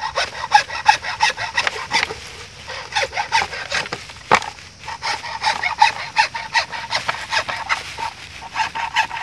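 A hand saw rasps back and forth through hollow bamboo in quick strokes.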